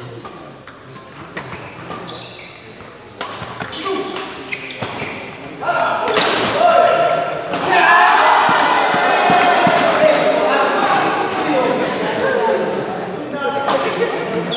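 Shuttlecocks are struck with sharp racket smacks in a large echoing hall.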